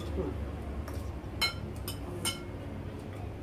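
Spoons clink against plates.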